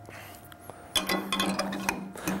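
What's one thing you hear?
A chisel scrapes and shaves spinning wood.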